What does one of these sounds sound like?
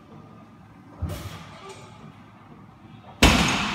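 Heavy barbell plates clank and knock as a weight is lifted and set down.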